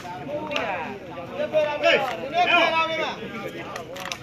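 A crowd of men and boys shouts and cheers loudly outdoors.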